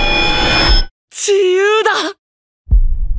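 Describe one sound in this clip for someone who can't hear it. A young man shouts out joyfully.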